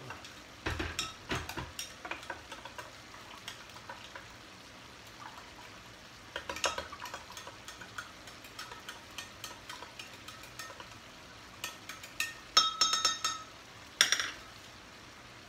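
A spice jar rattles as seasoning is shaken out by hand.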